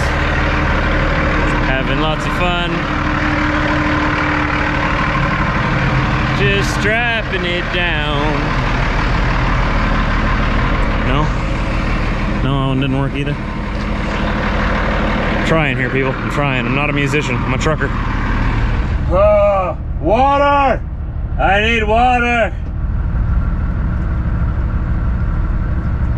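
A truck engine idles steadily nearby.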